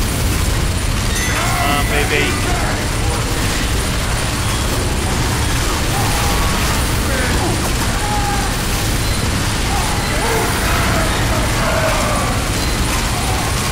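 A rapid-fire gun rattles steadily in a video game.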